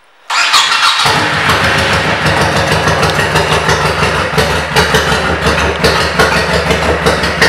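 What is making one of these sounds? A motorcycle engine idles with a loud, steady rumble.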